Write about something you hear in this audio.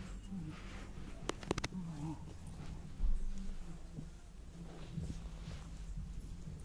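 Clothes rustle softly as they brush together close by.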